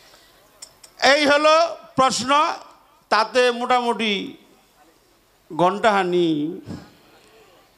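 A man sings loudly into a microphone, heard through loudspeakers.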